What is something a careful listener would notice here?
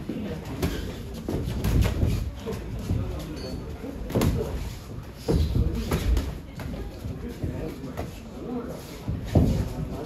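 Boxing gloves thud against a body and head in quick punches.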